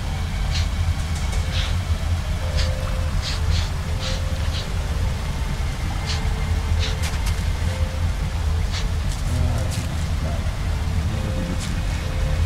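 Footsteps crunch slowly on rough ground.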